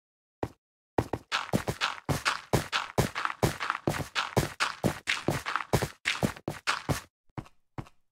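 Dirt and stone crunch in quick repeated bursts as blocks are dug away.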